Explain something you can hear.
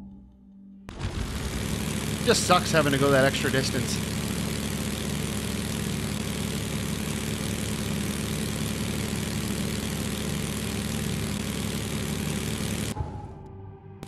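A small boat's motor hums steadily.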